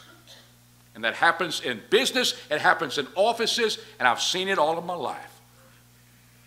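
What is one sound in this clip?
A middle-aged man speaks forcefully into a microphone in a room with a slight echo.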